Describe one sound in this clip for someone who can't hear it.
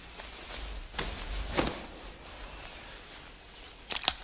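Cloth rustles as a sheet is dropped over a body.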